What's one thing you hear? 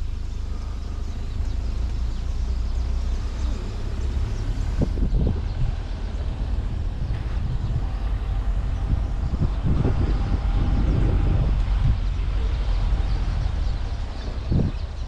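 An open vehicle's engine rumbles steadily as it drives along a dirt track.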